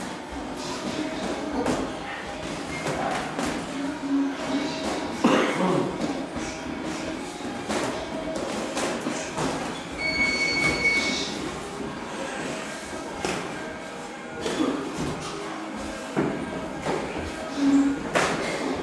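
Boxing gloves thud against a sparring partner.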